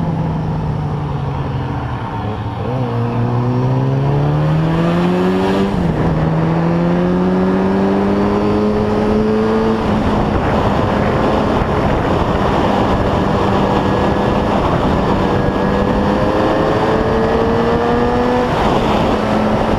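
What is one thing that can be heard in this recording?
A motorcycle engine revs up and down as the rider shifts gears.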